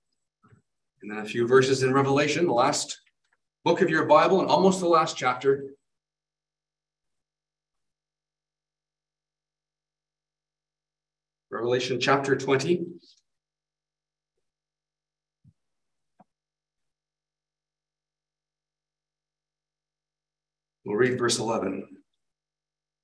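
A middle-aged man speaks calmly through an online call, pausing between phrases.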